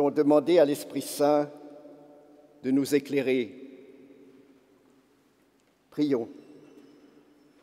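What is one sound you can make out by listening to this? An elderly man speaks slowly and solemnly into a microphone in a large echoing hall.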